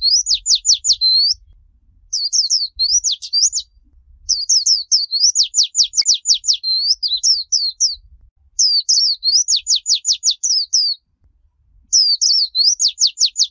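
A small bird sings close by in fast, high, repeated chirping bursts.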